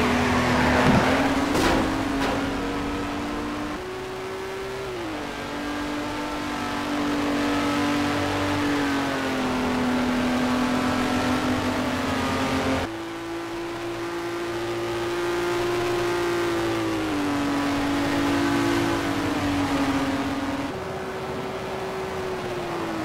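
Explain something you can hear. A racing car engine roars steadily and shifts pitch as the car speeds along.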